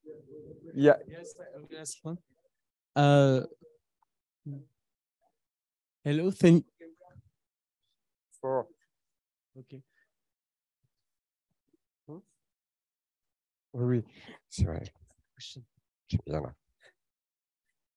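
A man speaks into a microphone, pausing often.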